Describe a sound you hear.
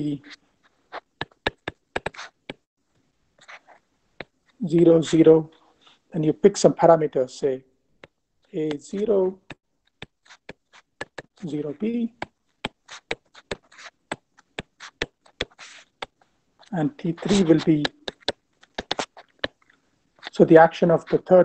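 A stylus taps and clicks on a tablet.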